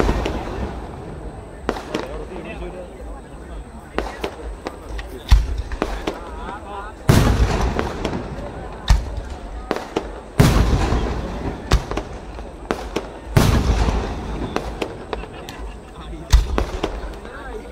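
Fireworks burst with loud booms and crackles that echo across open ground.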